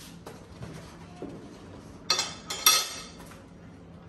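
A cardboard egg tray clatters and scrapes on a hard counter.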